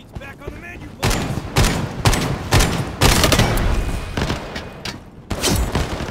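Gunshots fire in rapid bursts, echoing in a large hall.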